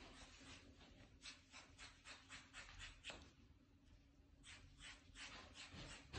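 Scissors snip repeatedly through thick hair.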